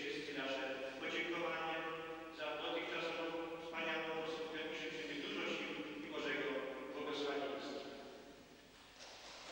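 An elderly man sings a chant into a microphone in an echoing hall.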